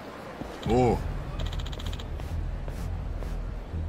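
Footsteps tap on pavement as a man walks up.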